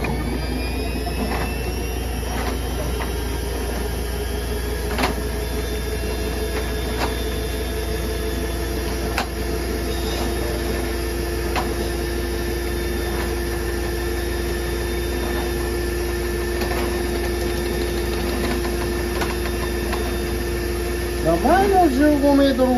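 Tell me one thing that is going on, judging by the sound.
Water churns and splashes around a spinning cable.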